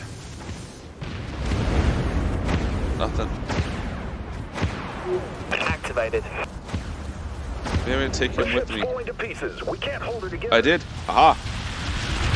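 Weapons fire in sharp bursts.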